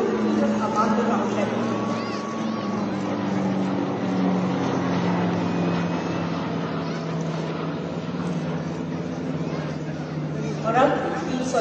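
Propeller planes drone overhead with a steady, slowly lowering hum.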